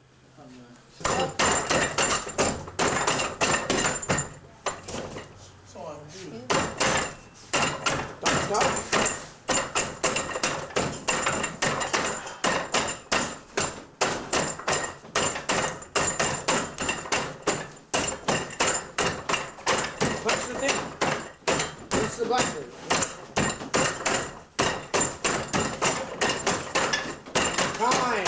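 Rapid wooden knocks and clacks as arms strike a wooden training dummy.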